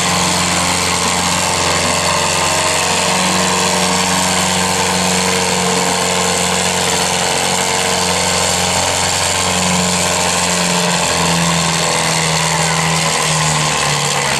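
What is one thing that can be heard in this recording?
A tractor engine roars loudly and strains under load, its pitch shifting up and down.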